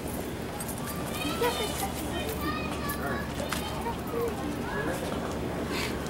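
Young children talk excitedly nearby.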